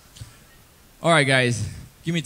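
A young man speaks loudly into a microphone over a loudspeaker.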